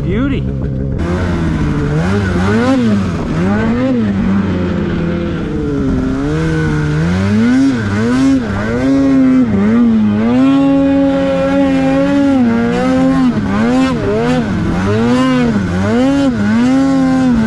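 A snowmobile engine revs up and down repeatedly, close by.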